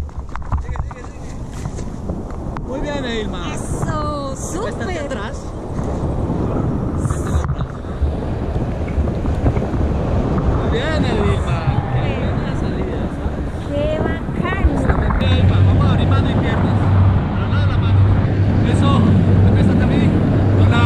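Wind rushes loudly past the microphone.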